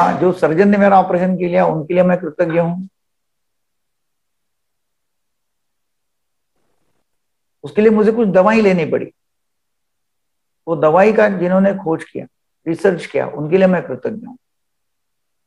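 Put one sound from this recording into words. An elderly man speaks calmly over an online call, in short phrases with pauses.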